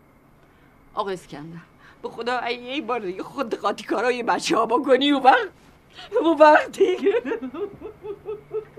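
A middle-aged woman speaks with feeling nearby.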